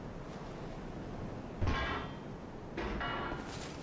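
Heavy armour clanks as a knight shifts about.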